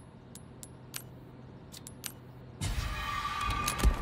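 Short menu clicks tick.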